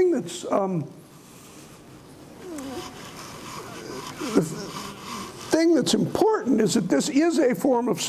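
A man lectures with animation through a microphone.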